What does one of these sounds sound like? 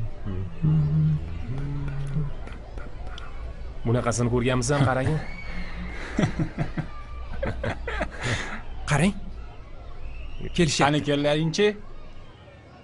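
Teenage boys talk and laugh together close by.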